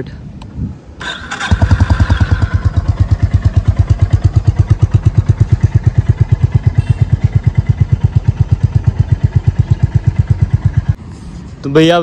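A motorcycle engine starts up and idles with a deep, even thumping.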